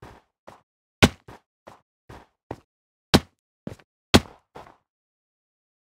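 Footsteps crunch on snowy blocks in a game.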